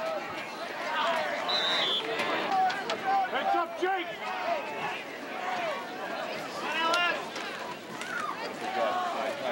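A crowd of people cheers and shouts loudly outdoors.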